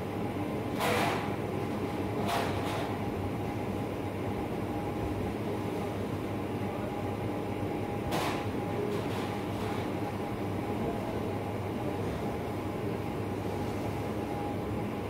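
A ventilation fan hums steadily.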